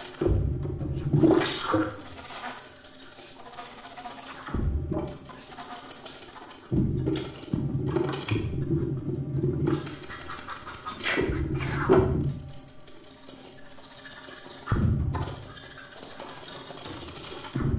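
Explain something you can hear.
A small ensemble plays music on a stage.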